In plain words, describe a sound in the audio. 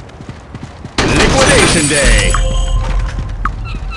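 A gun fires a loud burst of shots with a booming blast.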